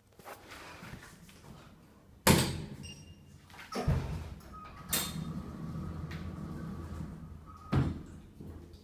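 Metal lift doors slide shut with a rumble and a thud.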